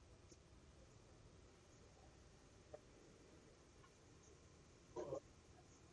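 A pen writes briefly on paper.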